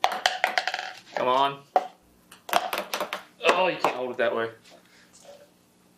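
Plastic cups tap against a table.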